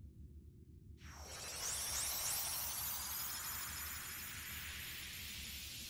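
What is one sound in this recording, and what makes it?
A magical burst swells into a bright, shimmering sparkle.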